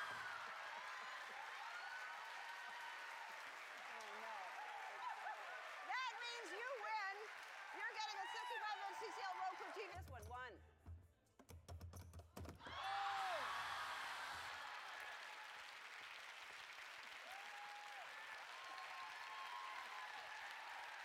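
A studio audience cheers and applauds loudly.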